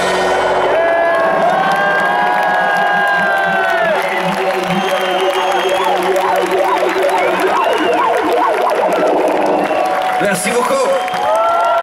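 A crowd cheers close by.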